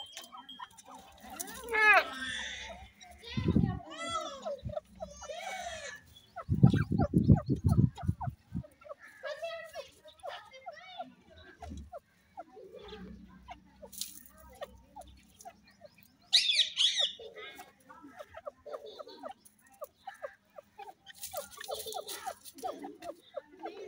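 Grey francolins make soft chirping calls close by.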